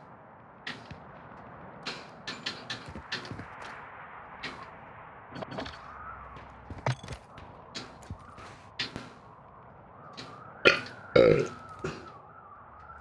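Short clicks and clatters sound as items are picked up in a game.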